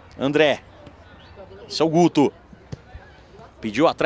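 A ball is kicked on a grass pitch.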